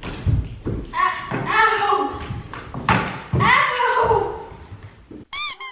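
A young woman cries out in pain close by.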